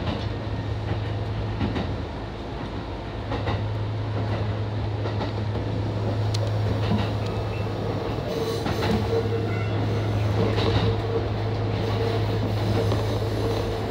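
A train motor hums steadily from inside the cab.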